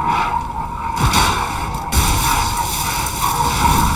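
A sword clashes and slashes in a fight.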